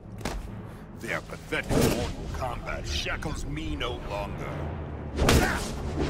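A man speaks with strain.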